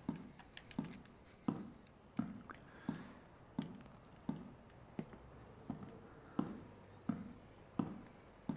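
Slow footsteps thud on a hard floor in a small echoing room.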